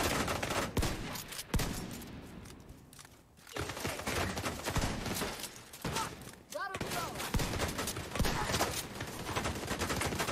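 Gunfire rattles in rapid bursts close by.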